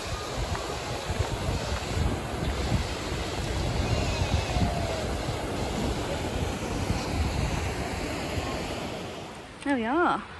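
A river flows and gurgles over stones.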